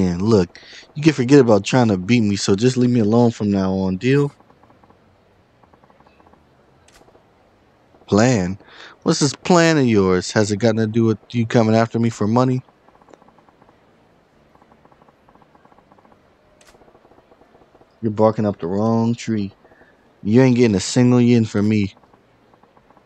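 A man speaks in a rough, mocking voice, close to the microphone.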